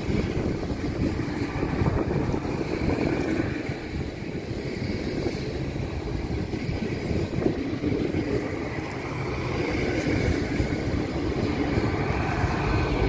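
A passenger train rumbles along the platform, its engines droning steadily.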